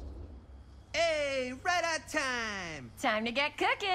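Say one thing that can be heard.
A young man calls out a cheerful greeting.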